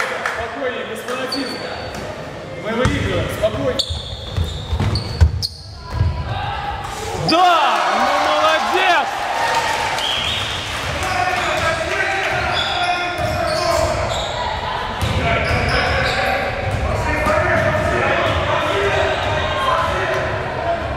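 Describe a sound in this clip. A crowd of young people talks and calls out in an echoing hall.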